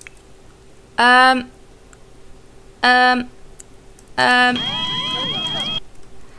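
A short electronic chime sounds several times.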